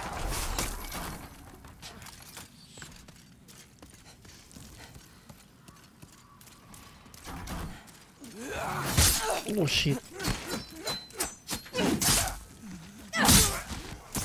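Sword blows clash and thud.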